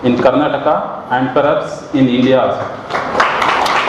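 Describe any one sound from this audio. A young man speaks into a microphone over loudspeakers in an echoing hall.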